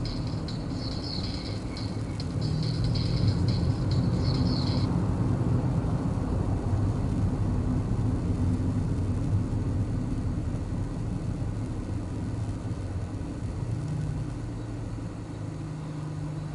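Tyres roll over the road with a low rumble that fades as the car slows to a stop.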